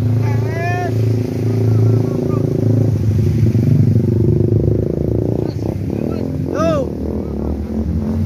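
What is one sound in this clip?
Water splashes under motorbike wheels.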